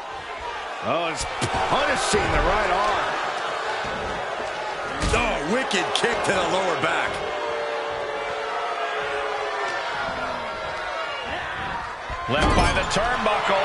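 Bodies slam onto a wrestling mat with heavy thuds.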